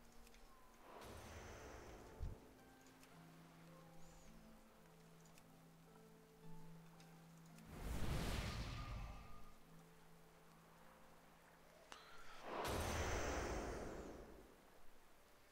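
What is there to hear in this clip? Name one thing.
Magic rushes past in loud whooshing bursts.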